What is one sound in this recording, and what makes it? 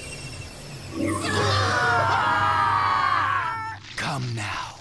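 A man screams loudly in agony.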